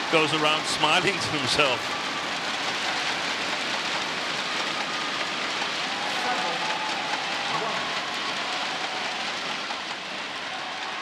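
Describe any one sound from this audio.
Fans bang inflatable clapper sticks together in a steady rattle.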